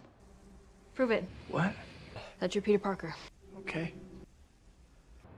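A young woman speaks tensely.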